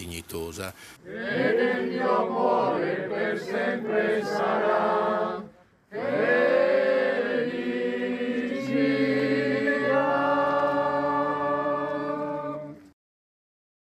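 A crowd of people sings together outdoors.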